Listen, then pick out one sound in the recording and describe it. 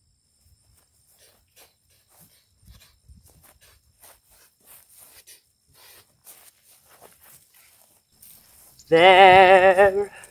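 A stick swishes through the air as it is swung and twirled.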